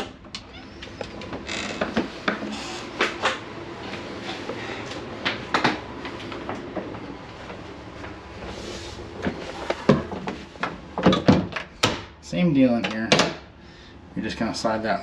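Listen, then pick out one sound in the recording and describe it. A metal door latch clicks as a handle turns.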